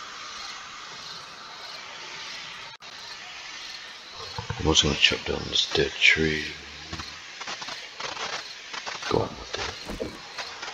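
Footsteps rustle through grass and brush.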